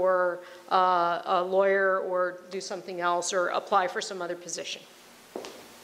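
A woman speaks with animation into a microphone, heard through a loudspeaker in a large room.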